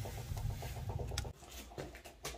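A wood fire crackles and roars softly.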